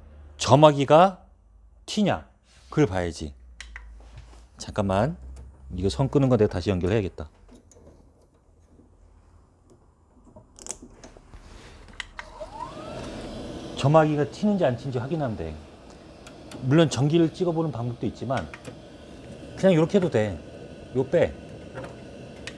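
A man talks calmly and explains, close to a microphone.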